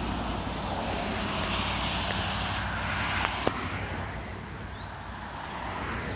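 Cars drive past on a paved road.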